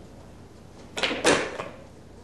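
A cue stick strikes a billiard ball.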